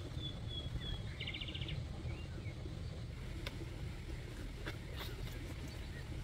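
A child's footsteps crunch softly on dry soil.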